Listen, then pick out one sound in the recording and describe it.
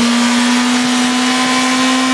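A motorcycle's rear tyre spins and screeches against the ground.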